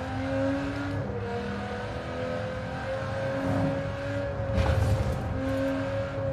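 Gears shift with a brief dip in the engine's roar.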